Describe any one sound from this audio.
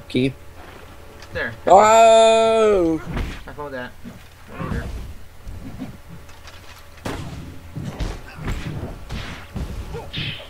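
Blades slash and strike in a fast fight.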